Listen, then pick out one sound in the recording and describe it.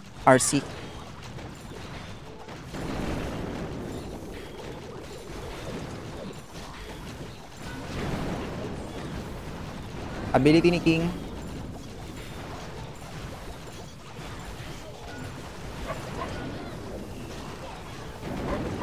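Battle sounds and small explosions play from a game.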